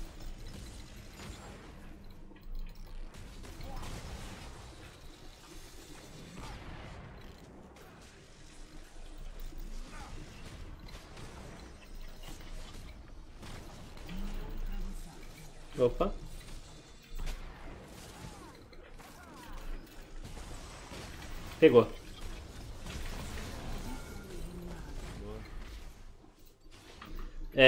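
Game combat effects clash and whoosh.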